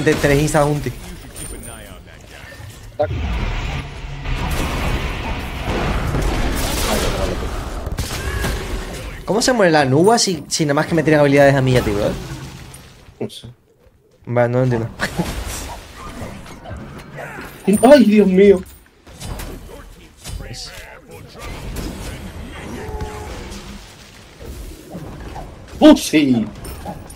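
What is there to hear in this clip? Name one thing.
Game spells and hits crash and whoosh.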